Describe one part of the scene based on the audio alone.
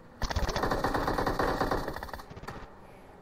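A truck engine roars.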